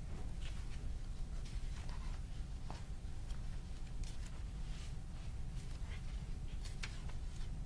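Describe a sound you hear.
Paper rustles as a man handles sheets.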